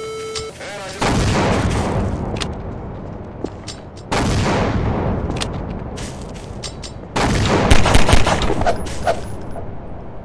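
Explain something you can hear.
A grenade explodes with a loud boom.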